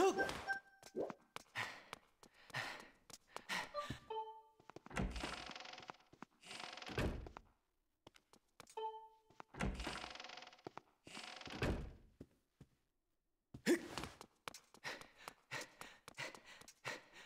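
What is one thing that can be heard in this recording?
Footsteps patter quickly across a floor.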